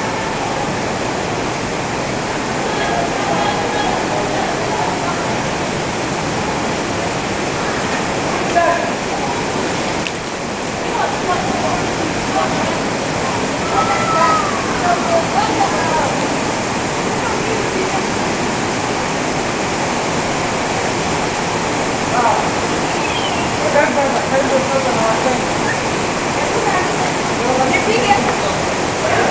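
Water rushes loudly and steadily nearby.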